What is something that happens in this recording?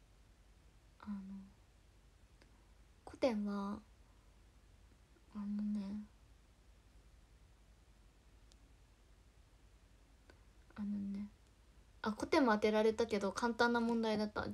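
A young woman speaks close to the microphone in short phrases.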